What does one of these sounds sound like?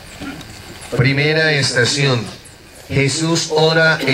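A man chants loudly in a sustained voice.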